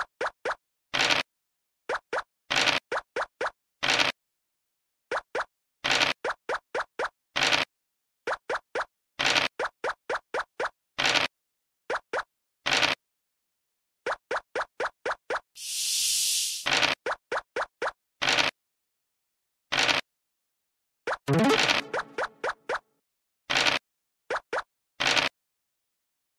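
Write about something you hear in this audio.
Game pieces hop along the board with quick, short ticks.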